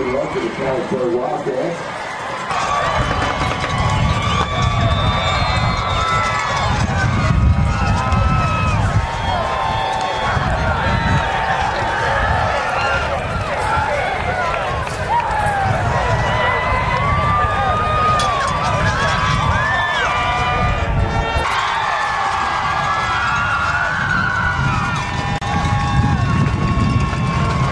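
A crowd of young men talks and calls out loudly outdoors.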